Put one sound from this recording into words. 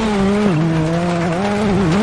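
Gravel crunches and sprays under a car's tyres.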